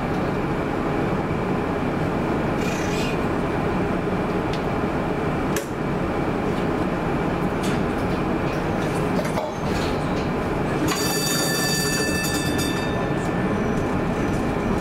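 Cars and vans drive past on a busy street, their tyres rumbling steadily.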